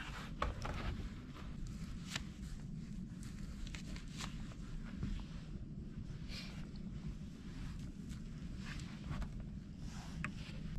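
Loose insulation material rustles and crunches as hands press it between logs.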